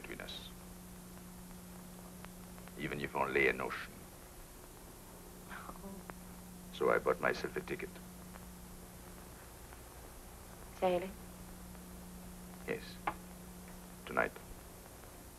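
A man speaks calmly and clearly to a listener nearby.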